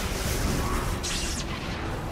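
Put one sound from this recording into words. A shimmering magical effect sparkles briefly.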